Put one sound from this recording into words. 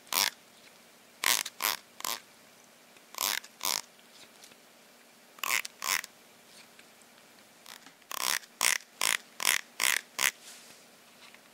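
A finger flicks along the teeth of a comb in short, sharp rattling bursts.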